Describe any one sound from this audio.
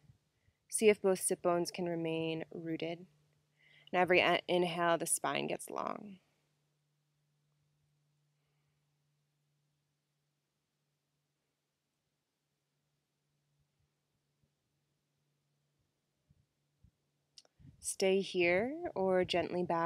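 A young woman speaks calmly and softly, close to a microphone, with long pauses.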